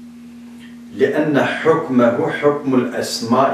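A middle-aged man reads aloud steadily, close to a microphone.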